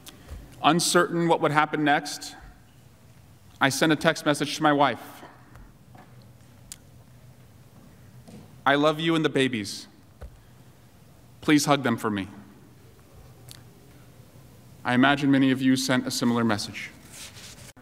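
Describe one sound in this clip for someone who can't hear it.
A man speaks formally into a microphone in short phrases with pauses.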